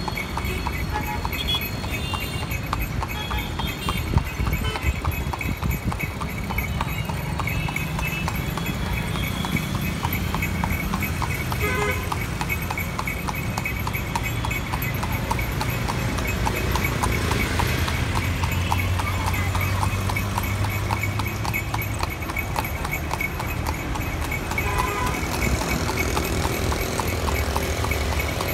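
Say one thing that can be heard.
Motor scooters ride by.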